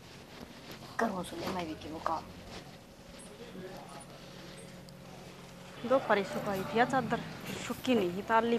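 A middle-aged woman speaks with animation nearby.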